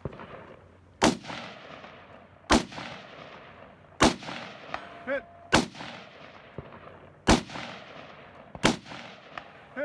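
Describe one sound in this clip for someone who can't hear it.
A rifle fires loud single shots that echo across the hills.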